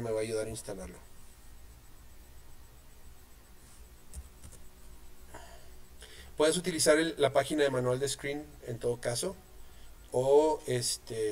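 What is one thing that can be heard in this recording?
A man talks calmly into a nearby microphone.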